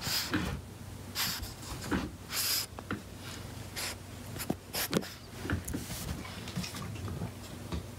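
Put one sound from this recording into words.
A small dog shuffles and rustles on a soft blanket.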